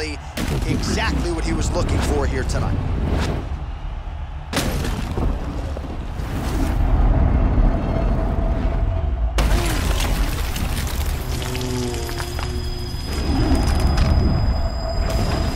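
Punches thud hard against a body.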